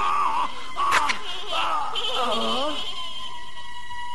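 A man shouts in rage.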